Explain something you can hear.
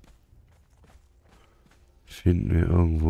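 Footsteps patter quickly on a wooden floor.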